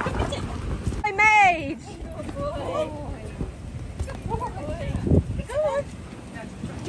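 Dogs howl and whine in high, wavering yelps.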